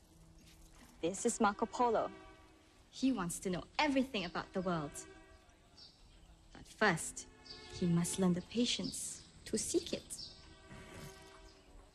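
A woman speaks calmly and warmly, close by.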